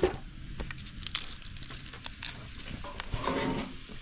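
Onion skins crackle softly as they are peeled.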